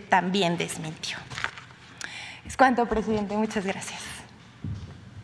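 A young woman speaks calmly into a microphone.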